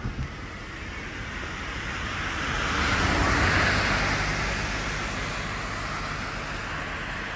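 A car drives past close by, its tyre noise swelling and then fading.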